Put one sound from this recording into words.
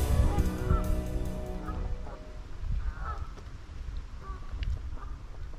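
Geese honk nearby on the water.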